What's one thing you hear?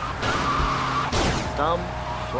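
A car crashes with a loud metallic bang.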